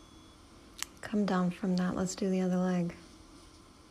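A woman speaks briefly and calmly nearby, outdoors.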